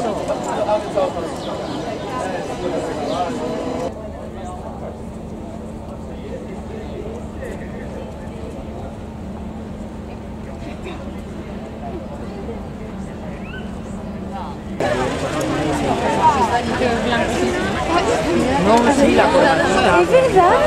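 A crowd of people chatters close by.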